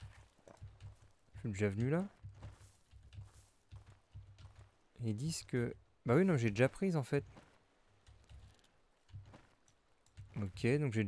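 Footsteps thud steadily along a forest path.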